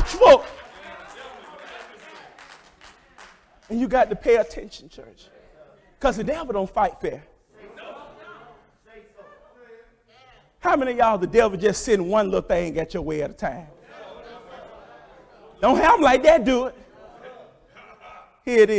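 A man preaches with animation through a microphone in an echoing hall, in loud bursts with pauses.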